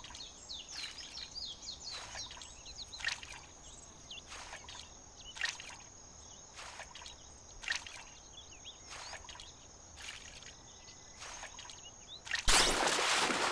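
Water ripples and splashes softly in short, regular bursts.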